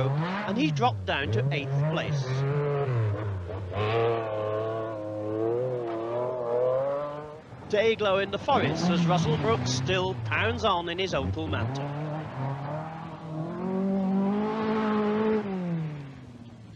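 A rally car engine roars and revs hard.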